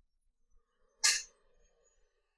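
A cue tip is rubbed with chalk in a short, scratchy scrape.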